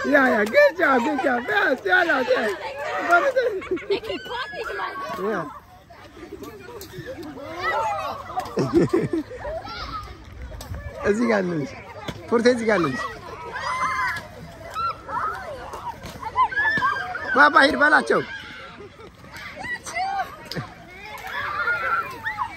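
Children and young women shout and laugh excitedly outdoors.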